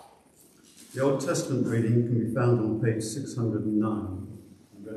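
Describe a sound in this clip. An elderly man reads aloud calmly through a microphone.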